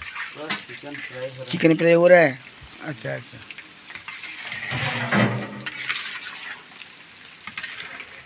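A metal ladle scrapes against a metal pan.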